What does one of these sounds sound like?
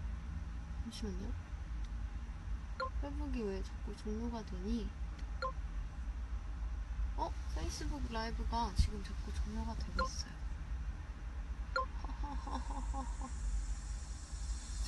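A young woman speaks calmly and softly close to a microphone.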